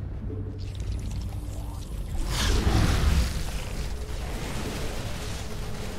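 A swarm of creatures skitters and screeches in a fight.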